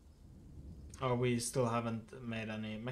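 A young man speaks close to a microphone, drawing out his words.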